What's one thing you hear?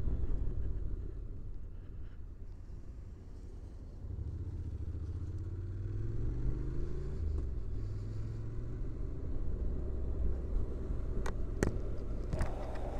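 A motorcycle engine hums steadily and rises in pitch as it speeds up.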